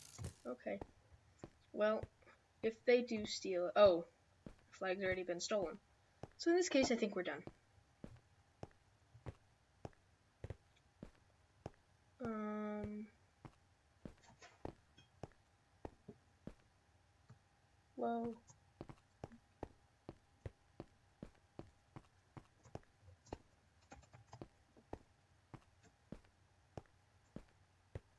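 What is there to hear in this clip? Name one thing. Footsteps tap quickly and evenly on stone.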